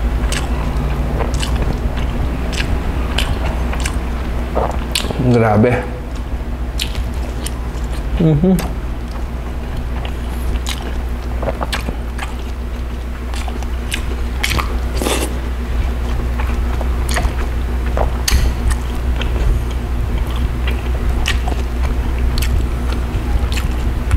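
A man picks at soft fish flesh, making small wet clicks.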